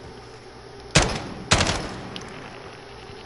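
Two loud rifle shots crack, each followed by a ringing echo.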